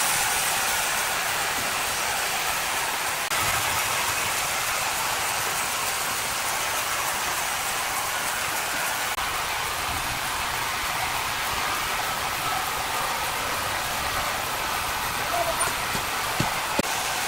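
A sawmill motor hums loudly.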